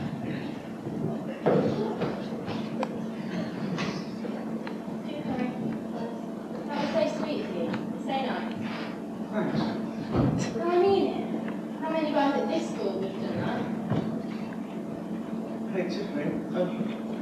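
Children talk on a stage, heard from a distance in a large, echoing room.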